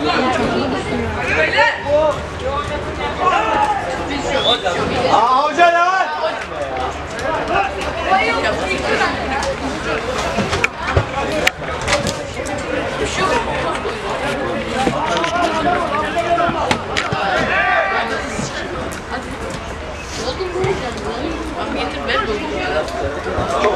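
Players shout and call out across an open pitch outdoors.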